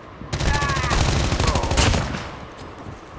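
A burst of rapid gunfire rings out loudly.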